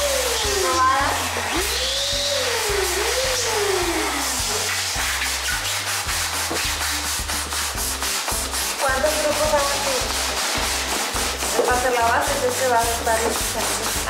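Rubber balloons squeak as they rub together.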